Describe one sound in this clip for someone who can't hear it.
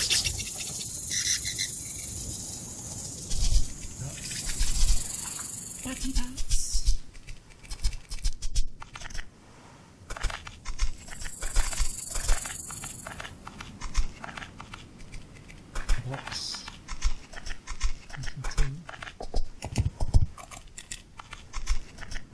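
Footsteps crunch steadily through grass and sand.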